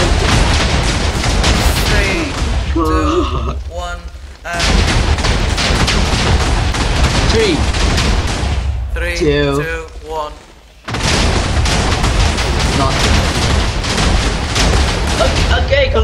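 Many explosions boom in rapid, crackling bursts.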